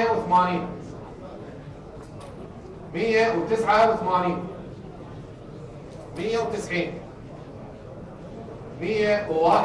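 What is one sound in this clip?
A man speaks calmly through a microphone, in short phrases with pauses.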